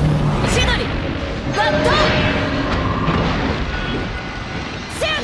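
Bright magical blasts ring with sharp whooshes.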